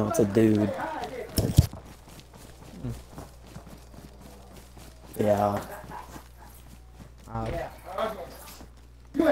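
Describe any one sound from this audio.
Footsteps tread steadily on a road and through grass.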